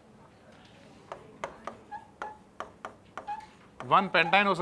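A marker squeaks and taps on a board.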